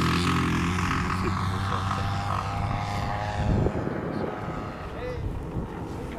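A model airplane engine drones overhead and slowly fades into the distance.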